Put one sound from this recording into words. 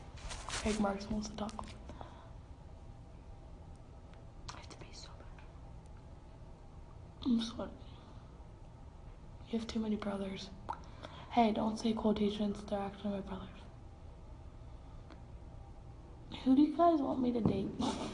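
A teenage girl talks casually, close by.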